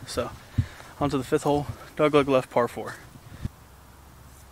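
A young man talks casually and close up.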